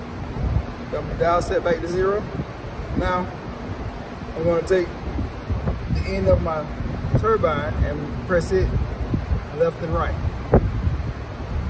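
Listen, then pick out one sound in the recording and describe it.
A man speaks calmly close by, explaining.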